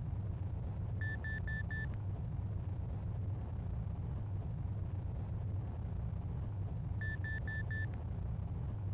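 A cockpit warning tone beeps in quick bursts.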